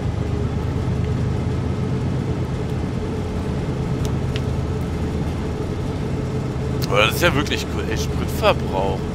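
Train wheels click over the rails.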